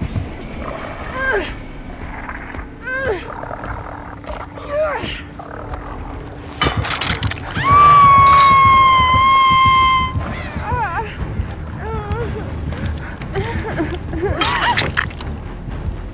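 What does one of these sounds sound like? A woman cries out and screams in pain.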